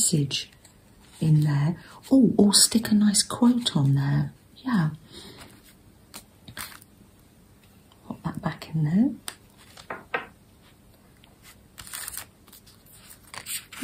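Paper rustles softly as cards are handled.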